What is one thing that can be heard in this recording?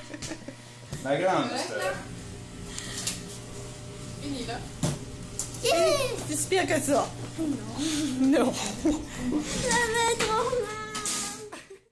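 A young girl talks cheerfully close by.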